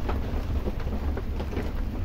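A wood fire crackles.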